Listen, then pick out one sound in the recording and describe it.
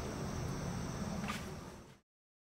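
A metal lantern clinks softly as a hand touches it.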